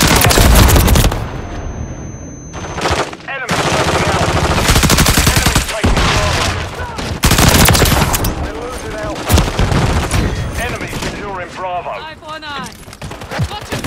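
An automatic rifle fires in rapid bursts in a video game.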